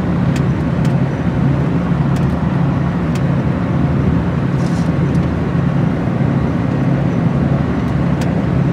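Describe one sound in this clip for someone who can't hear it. A vehicle engine drones steadily from inside a moving bus.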